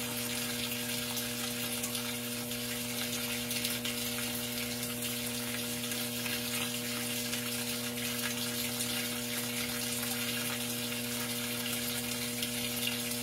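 Water streams and splashes into a washing machine tub.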